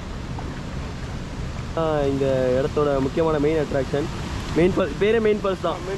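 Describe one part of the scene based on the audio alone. A paddle splashes in water.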